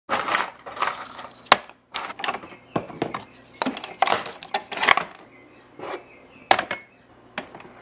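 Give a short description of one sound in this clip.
Plastic coffee pods clatter and click as a hand sorts through them.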